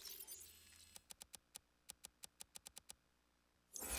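Soft clicks tick quickly one after another.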